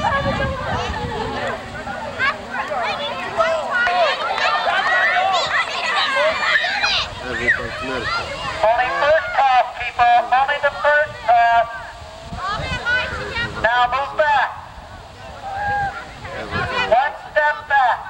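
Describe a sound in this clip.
A crowd of children chatter and shout outdoors.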